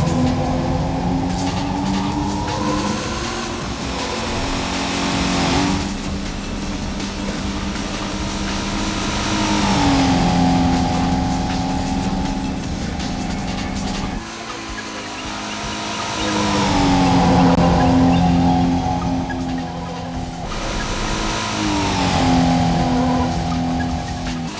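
A car engine revs and whines steadily, shifting pitch as it changes gears.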